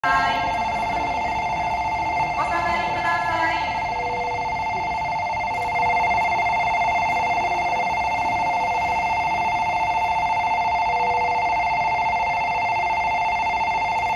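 A train horn sounds a long, steady, two-toned blast.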